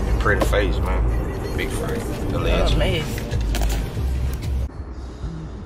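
A man talks casually and close by.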